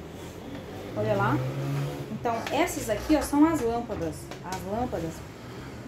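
A woman speaks calmly, explaining, close by.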